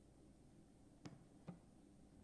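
A candlestick thuds down onto a hard surface.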